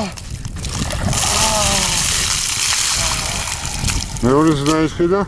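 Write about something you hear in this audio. Water pours and splashes over a man's head.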